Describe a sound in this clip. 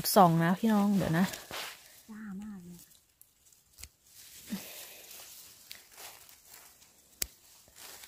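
Scissors snip through mushroom stems.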